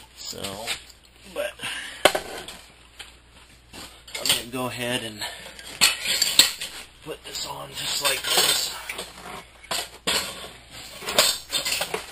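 Metal parts clank together.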